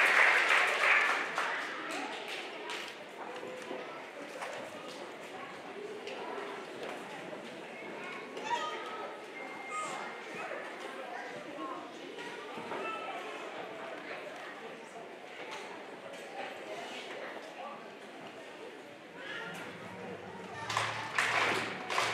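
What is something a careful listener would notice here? Children murmur and chatter quietly nearby.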